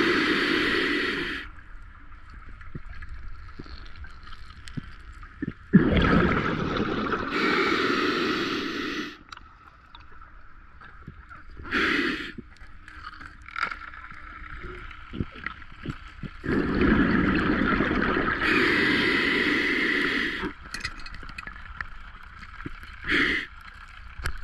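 Scuba bubbles gurgle and rush loudly in bursts underwater.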